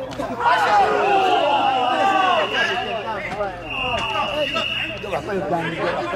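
A referee's whistle blows in long blasts.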